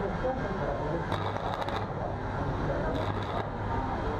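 An electric arc welder crackles and buzzes.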